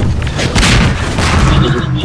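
A rocket explodes with a loud boom.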